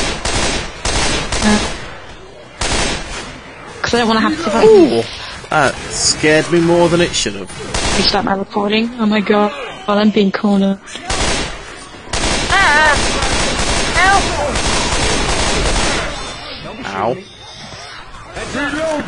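Several young people talk with animation over an online call.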